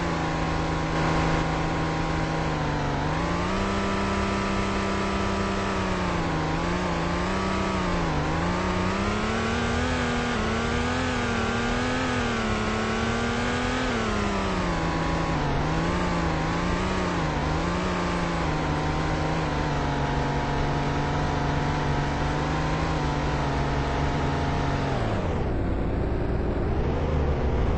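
A car engine hums steadily, its pitch rising and falling as the car speeds up and slows down, then dropping low near the end.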